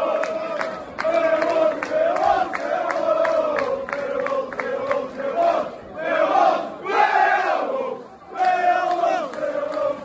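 Clapping hands beat along with the chant.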